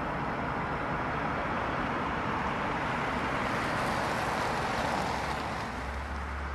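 A car approaches and roars past close by.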